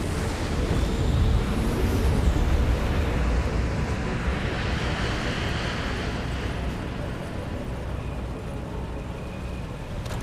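A hovering aircraft's jet engines roar with a deep, steady rumble.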